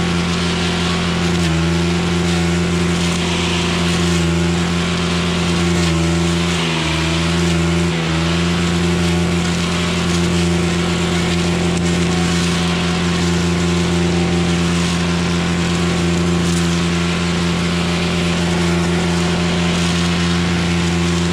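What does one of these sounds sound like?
A petrol string trimmer engine drones loudly and steadily, close by.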